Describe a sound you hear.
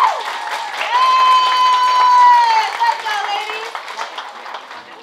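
A young girl sings a long high note loudly in an echoing hall.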